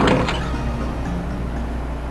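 A wooden door slides open.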